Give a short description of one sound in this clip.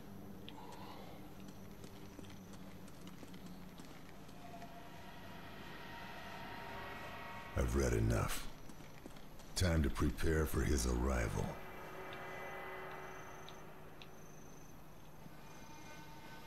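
Footsteps patter softly on stone steps.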